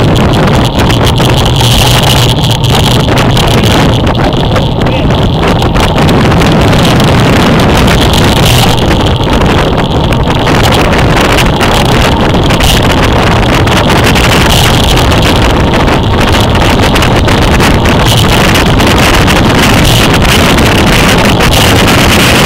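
Strong wind roars steadily against a moving bicycle.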